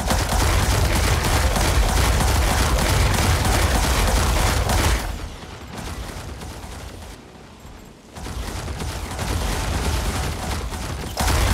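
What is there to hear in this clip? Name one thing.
Rapid laser gunfire rattles and crackles.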